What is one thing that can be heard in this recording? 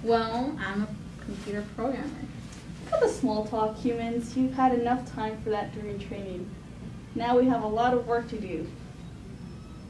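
A girl speaks with animation nearby.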